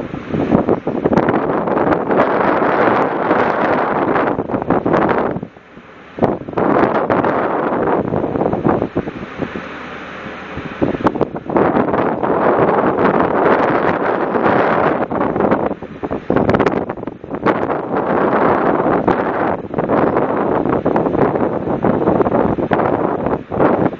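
Strong wind roars and buffets outdoors at sea.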